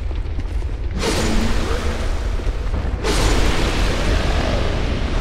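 A sword slashes and strikes with heavy blows.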